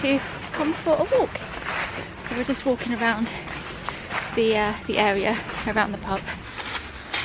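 A young woman talks animatedly close to the microphone.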